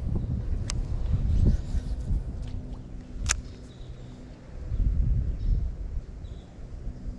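A fishing reel clicks and whirs as line is wound in.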